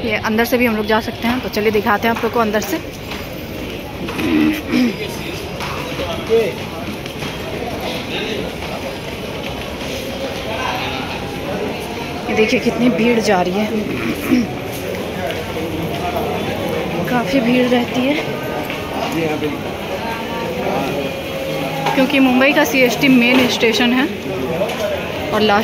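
A man talks close by.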